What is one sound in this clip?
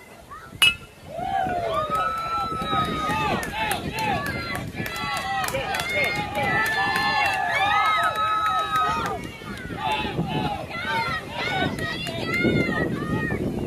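A crowd of children and adults cheers and shouts excitedly outdoors.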